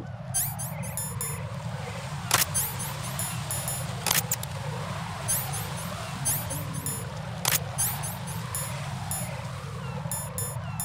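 Sea waves wash steadily in the background.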